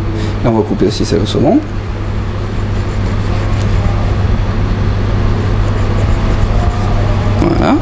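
A knife cuts through food on a board.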